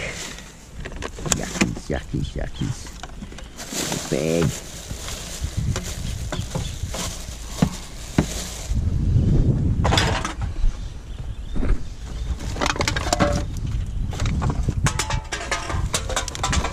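Gloved hands rummage through rubbish in a plastic bin, rustling wrappers.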